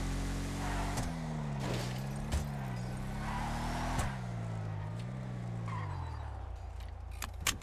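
A vehicle engine revs up and down.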